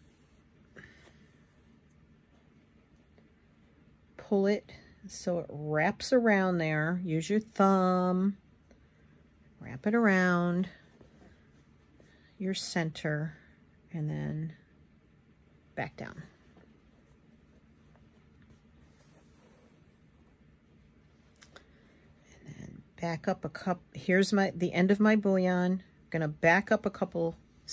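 Thread rustles softly as it is pulled through cloth.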